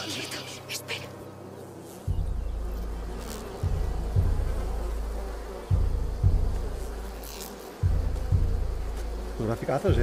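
A young man talks softly into a close microphone.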